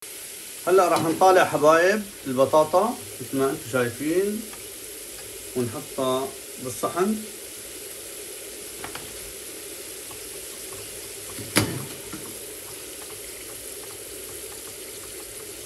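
A metal spatula scrapes and clinks against a frying pan.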